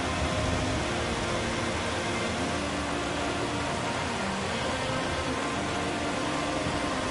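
Rain patters steadily all around.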